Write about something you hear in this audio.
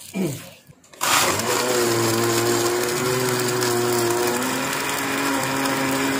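A blender whirs loudly, grinding with a steady roar.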